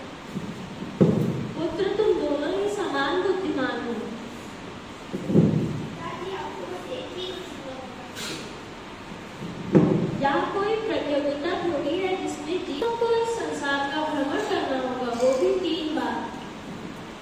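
A child speaks into a microphone in an echoing room.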